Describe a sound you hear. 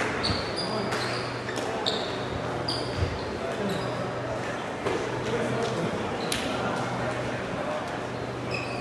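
Shoes squeak sharply on a hard court in a large echoing hall.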